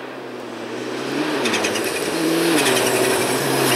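Gravel crackles and sprays under the tyres of a rally car.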